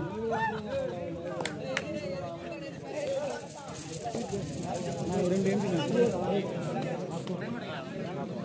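A crowd of young men chatters and shouts nearby outdoors.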